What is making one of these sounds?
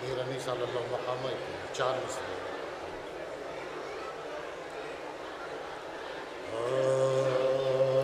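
A man sings into a microphone, heard through a loudspeaker.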